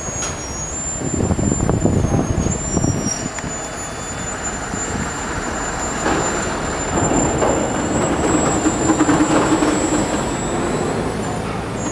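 A rail truck rolls slowly along the tracks with clanking wheels.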